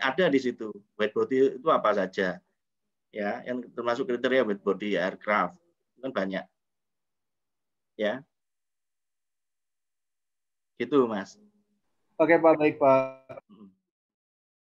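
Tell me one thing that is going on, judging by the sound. A man talks calmly over an online call.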